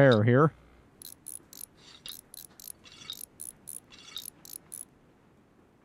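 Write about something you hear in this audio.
A ratchet wrench clicks in quick, repeated bursts.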